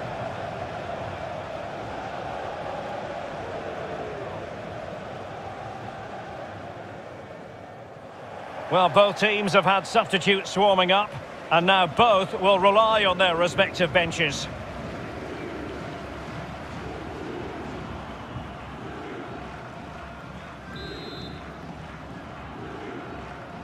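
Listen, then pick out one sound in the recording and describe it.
A large stadium crowd roars.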